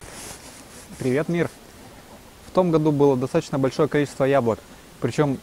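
A young man speaks calmly close by, outdoors.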